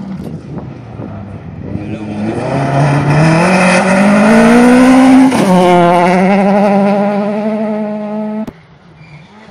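A rally car races past at full throttle on a gravel road.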